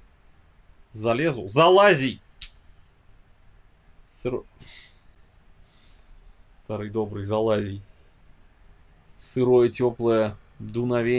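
A young man reads aloud with expression close to a microphone.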